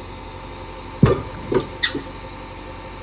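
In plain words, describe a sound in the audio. A metal grapple clanks loudly against the ground a few times.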